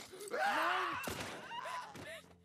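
A gunshot bangs loudly indoors.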